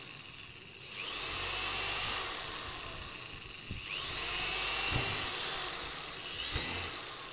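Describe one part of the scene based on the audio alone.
An electric drill whirs, speeding up and slowing down in bursts.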